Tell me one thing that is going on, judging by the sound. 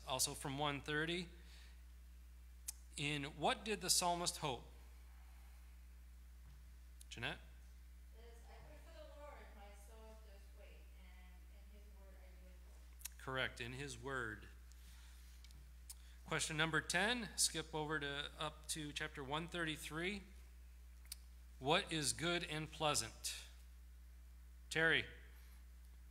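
A middle-aged man speaks calmly into a microphone in a large hall, pausing between phrases.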